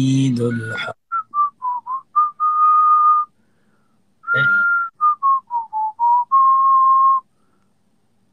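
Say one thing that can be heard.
A young man whistles a tune.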